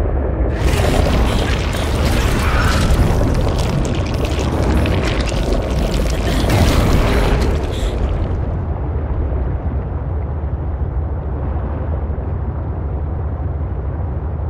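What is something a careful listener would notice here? A small underwater craft's engine hums low and steady.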